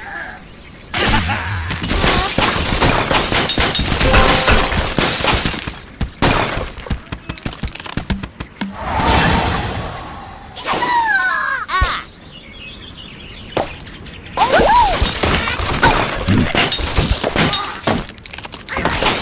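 Wooden blocks crash and clatter as a structure collapses.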